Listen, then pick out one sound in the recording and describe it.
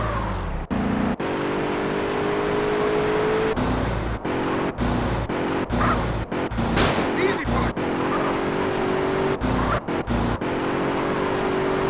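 Car tyres screech on a turn.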